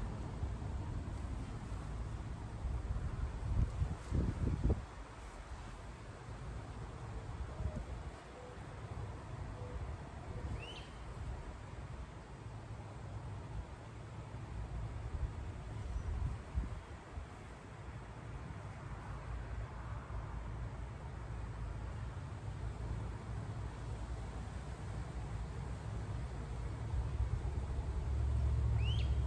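Leaves rustle as plants are handled.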